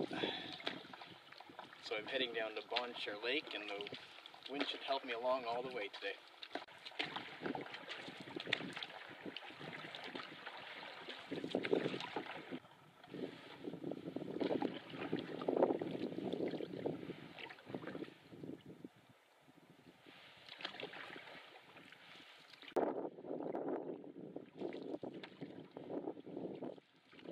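Small waves lap against the side of a canoe.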